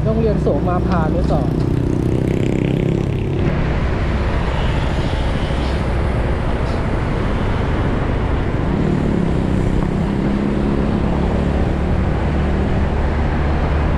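A motorcycle engine hums steadily close by while riding.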